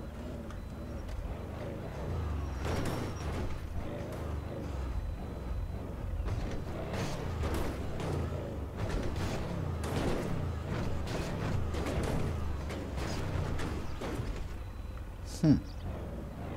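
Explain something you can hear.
A car engine hums at low speed.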